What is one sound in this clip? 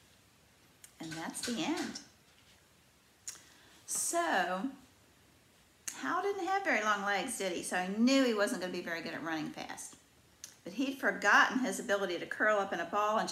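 An elderly woman speaks calmly and expressively close by.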